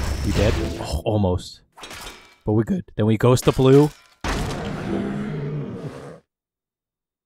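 Magic blasts whoosh and crackle in a fantasy battle.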